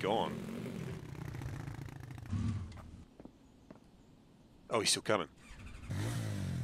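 A quad bike engine hums and revs.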